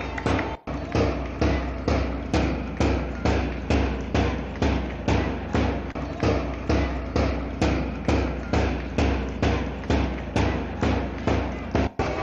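A large drum beats in a fast, steady rhythm outdoors.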